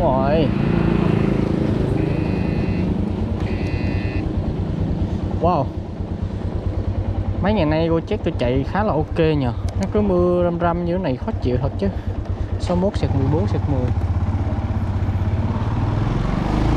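A motorbike engine putters steadily at low speed.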